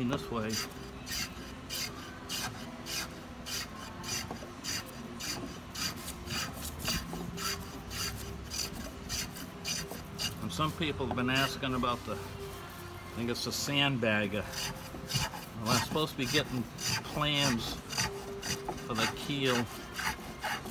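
A hand plane shaves thin curls off wood in quick, repeated strokes.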